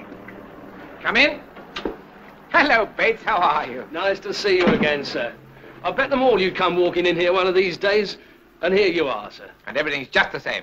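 A man speaks cheerfully at close range.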